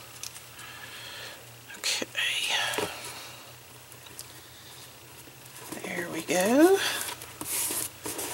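Stiff paper rustles and taps softly as it is handled.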